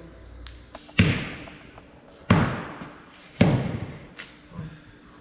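A dead-blow mallet thuds hard on a steel part, echoing in a large hall.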